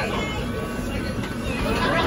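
A roller coaster rumbles along its track nearby.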